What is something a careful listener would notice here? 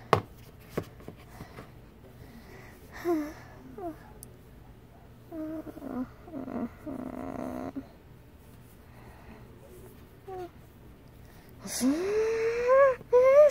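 A plush toy bumps softly against a plastic surface.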